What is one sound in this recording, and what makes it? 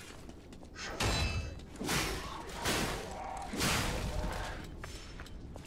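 Heavy weapon swings whoosh and strike with loud thuds.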